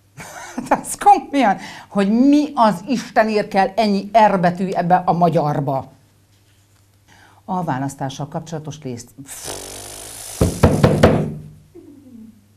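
A woman speaks clearly and calmly into a nearby microphone.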